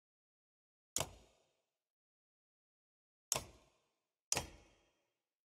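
A short whooshing menu sound plays three times.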